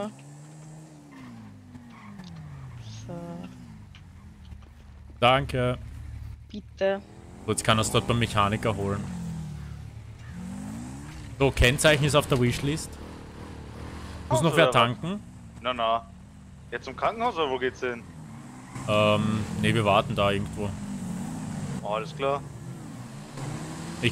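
Motorbike engines rev and drone.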